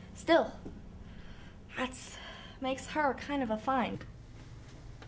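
A young woman speaks close by with animation, her voice rising and falling.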